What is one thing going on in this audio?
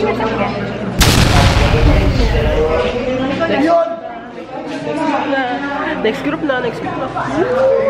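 A teenage girl shouts excitedly close to the microphone.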